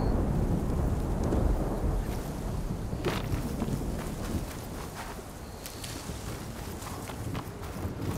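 Footsteps crunch through dry grass and brush.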